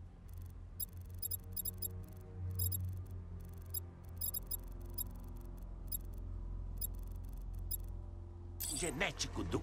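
Soft electronic ticks sound rapidly as a menu selection turns.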